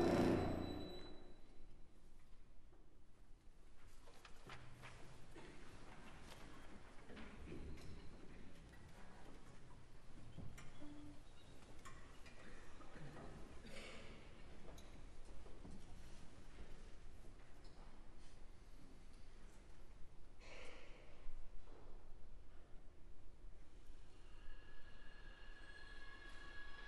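An orchestra's strings play softly in a large hall.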